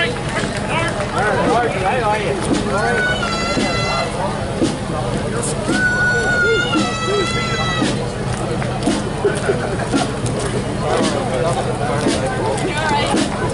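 A marching band's drums beat steadily outdoors.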